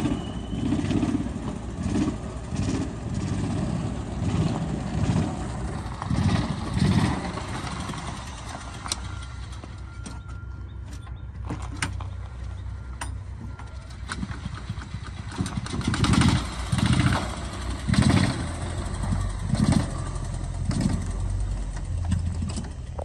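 A small utility cart's engine hums steadily as it drives past.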